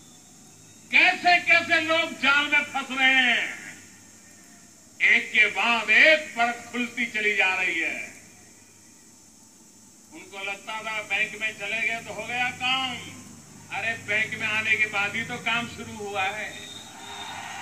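An elderly man speaks forcefully into a microphone over loudspeakers, in bursts with pauses.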